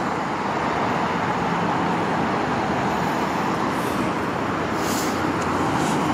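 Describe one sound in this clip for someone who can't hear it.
Traffic roars steadily on a nearby road.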